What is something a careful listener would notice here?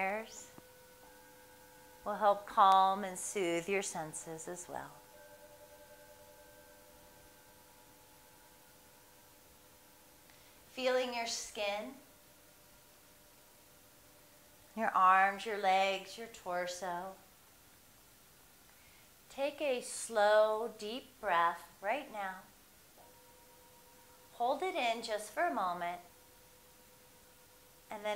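A singing bowl is struck and rings with a long, steady, fading tone.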